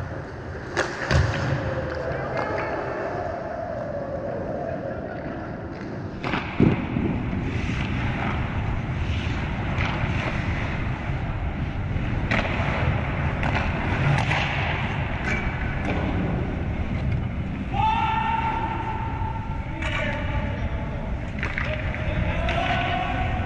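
Hockey sticks clack against pucks, echoing through a large hall.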